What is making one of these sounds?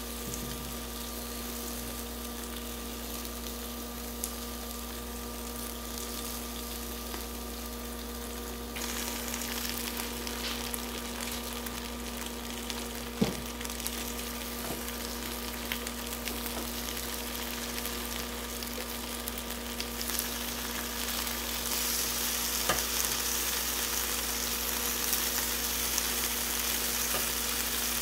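An electric grill hums steadily.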